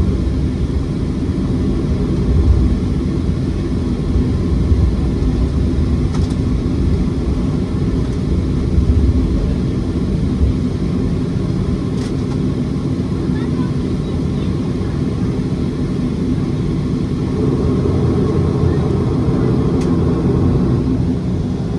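Airliner wheels rumble and thump over the runway.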